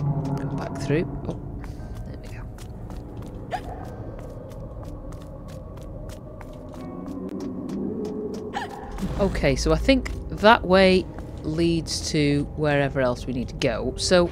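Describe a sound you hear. Light footsteps patter quickly on hard ground.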